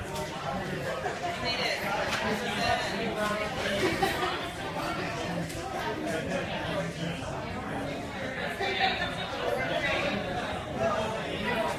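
A woman speaks steadily to an audience.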